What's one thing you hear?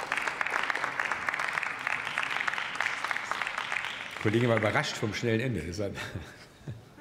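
Applause rings through a large hall.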